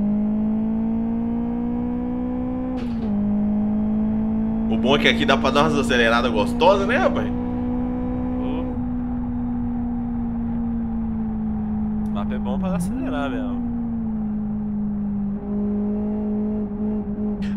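A racing car engine drones steadily, its pitch shifting as gears change.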